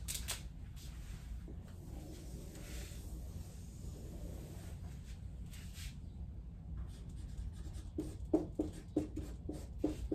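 A marker squeaks as it writes on a whiteboard.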